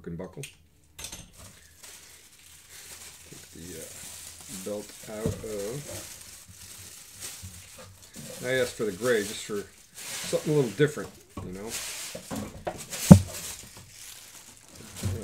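Plastic bubble wrap crinkles and rustles close by.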